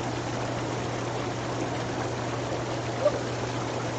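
Water splashes as a young woman climbs into a hot tub.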